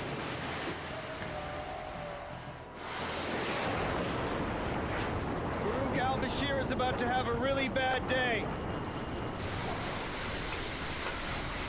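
Waves crash and churn against a ship.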